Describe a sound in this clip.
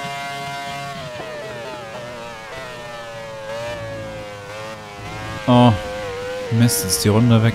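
A racing car engine drops in pitch as the car slows down.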